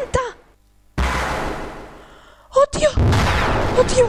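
A game plays a harsh cracking and shattering effect.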